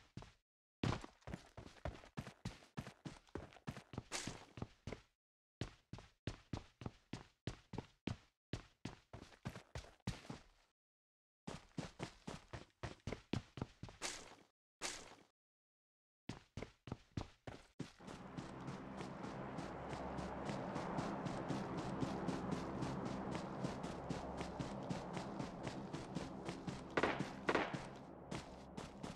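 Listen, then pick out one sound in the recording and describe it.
Footsteps run quickly and steadily over wooden boards and grass.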